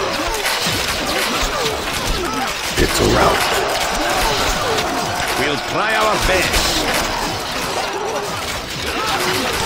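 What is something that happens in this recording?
Heavy stones crash against walls in a battle.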